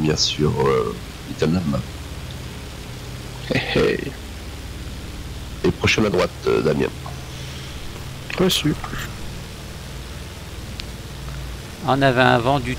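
A propeller plane's engine rumbles steadily at idle.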